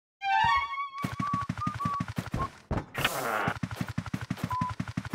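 Quick footsteps tap steadily on a floor.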